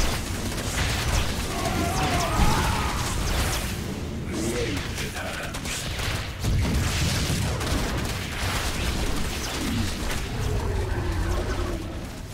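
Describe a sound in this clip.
Game creatures screech and hiss in battle.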